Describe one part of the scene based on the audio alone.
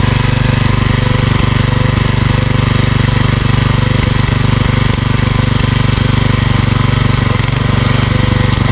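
A small petrol engine chugs loudly and steadily close by.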